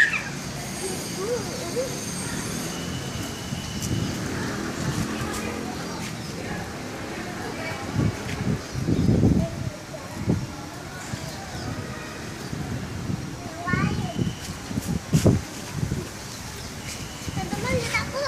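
A young girl talks and giggles close by.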